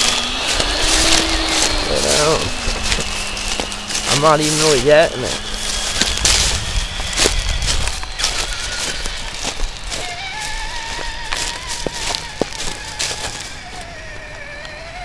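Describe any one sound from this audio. Plastic wheels crunch over gravel and dry leaves.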